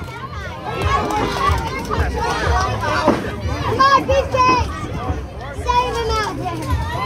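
Spectators chatter and call out nearby outdoors.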